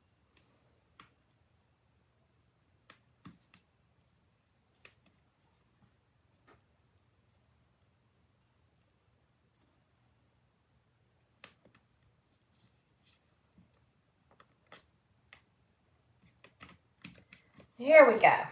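Paper rustles and taps softly under hands.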